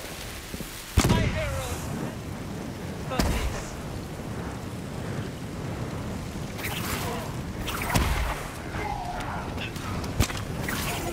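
Heavy blasts boom sharply now and then.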